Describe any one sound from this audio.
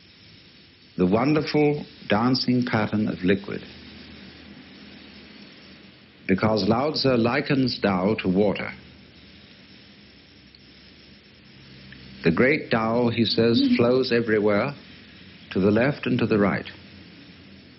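A man speaks calmly in short phrases with pauses.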